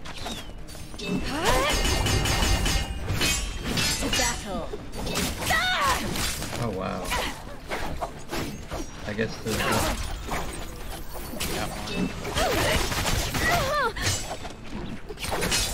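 Blades clash and whoosh in a fast fight.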